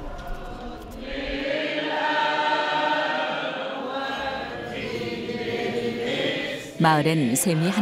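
A choir chants slowly in a large echoing hall.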